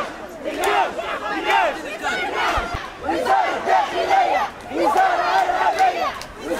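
A crowd of young men chants loudly in unison outdoors.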